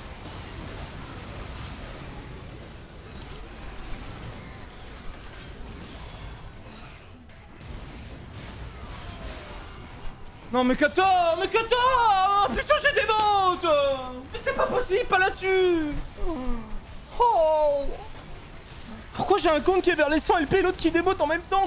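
Game sound effects clash and whoosh.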